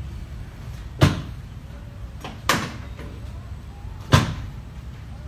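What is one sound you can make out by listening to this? Hands slap on a bare back.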